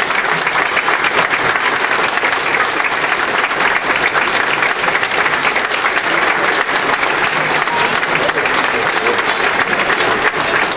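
An audience claps and applauds steadily in a large hall.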